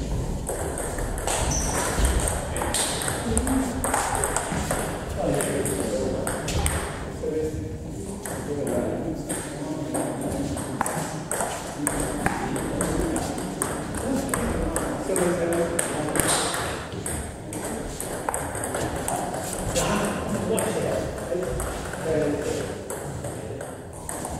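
A ping-pong ball clicks back and forth between paddles and a table.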